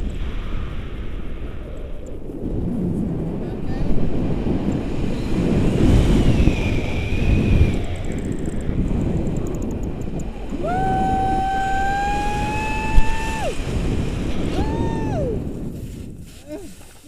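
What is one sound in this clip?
Wind roars loudly past the microphone.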